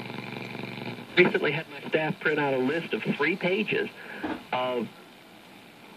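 An old radio whistles and warbles as a hand turns its tuning knob.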